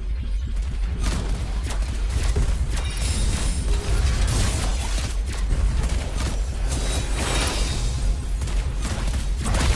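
Game spell blasts and fighting effects crackle and boom.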